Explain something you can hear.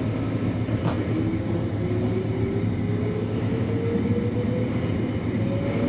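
An electric train motor whines, rising in pitch as the train speeds up.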